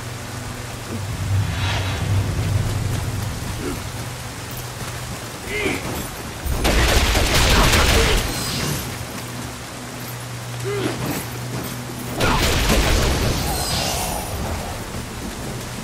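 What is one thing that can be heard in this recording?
Swords clash and strike in short bursts of fighting.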